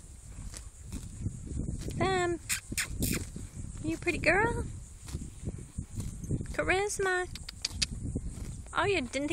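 A horse tears and munches grass up close.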